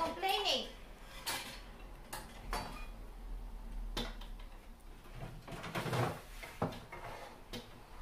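Kitchenware clatters and knocks.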